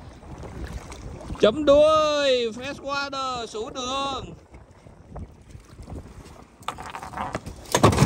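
Water splashes as a fish thrashes in a net.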